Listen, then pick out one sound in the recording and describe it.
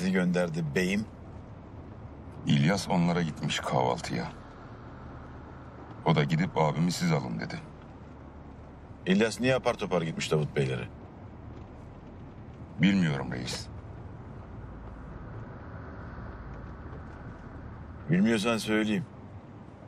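A middle-aged man speaks calmly and quietly, close by.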